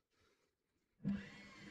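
A stiff brush scrapes across metal.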